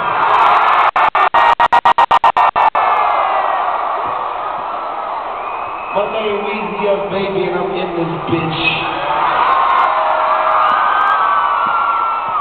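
A large crowd cheers and screams loudly.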